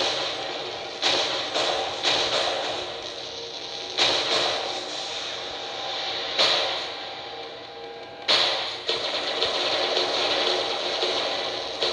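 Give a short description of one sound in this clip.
Heavy guns fire in loud, sudden bursts.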